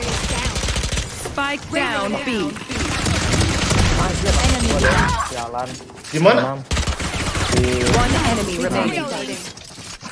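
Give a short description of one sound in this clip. Rapid gunfire bursts from a rifle.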